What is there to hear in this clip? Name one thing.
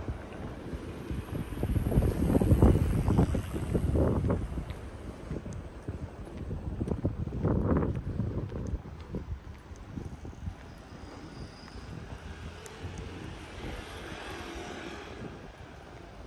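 Wind gusts outdoors.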